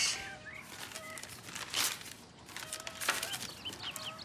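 Paper rustles as an envelope is torn open.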